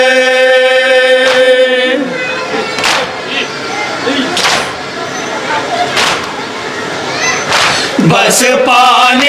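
A man chants loudly through a microphone in a melodic, mournful voice.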